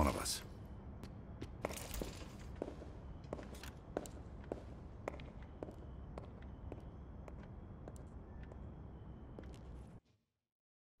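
Footsteps walk away across a hard floor.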